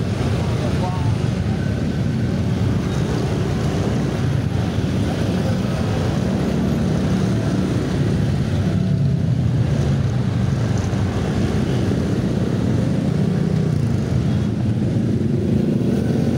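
Car and motorbike engines idle and rumble all around in heavy traffic.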